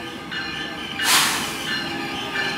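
A train's horn blasts loudly.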